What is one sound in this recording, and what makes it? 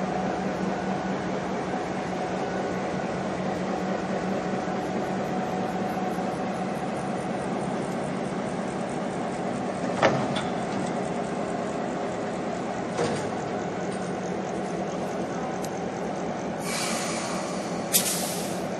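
A diesel locomotive engine rumbles steadily at idle.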